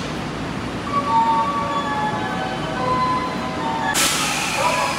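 A train's brakes squeal in high, wavering tones.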